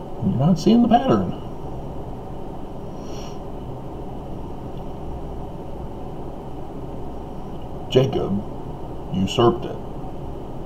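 A middle-aged man speaks close to a microphone in short bursts, with long pauses.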